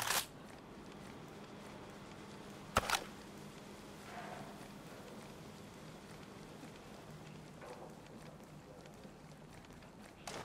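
Gear rustles and clinks as a soldier creeps along.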